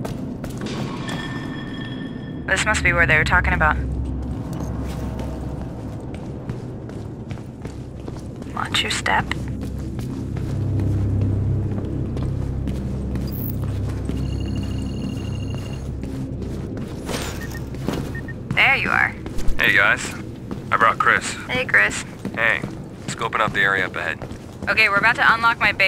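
Footsteps tread steadily over a hard floor.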